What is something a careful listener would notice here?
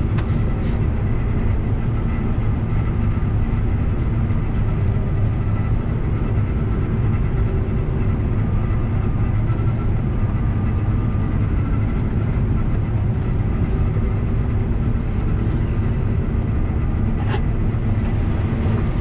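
A combine harvester's engine drones steadily, heard from inside the cab.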